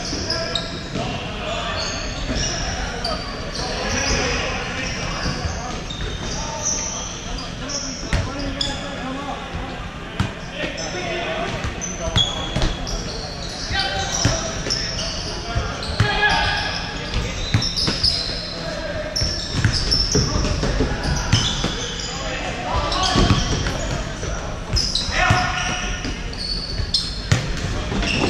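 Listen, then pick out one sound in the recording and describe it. Men shout and call out to each other across the hall.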